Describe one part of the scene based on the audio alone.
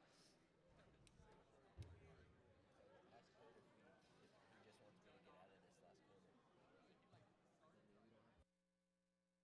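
A crowd of people chatters in a large echoing gym.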